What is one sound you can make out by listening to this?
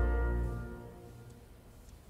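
An orchestra holds a loud chord that breaks off and rings away in a large hall.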